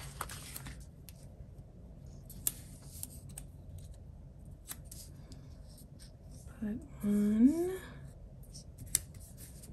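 Stickers are pressed and smoothed onto paper with soft rubbing.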